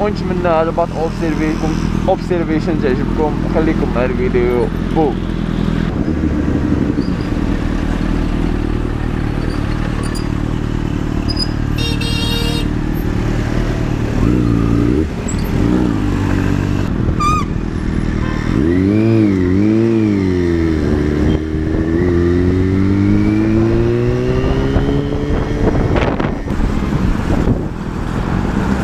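A motorcycle engine rumbles close by and revs up and down.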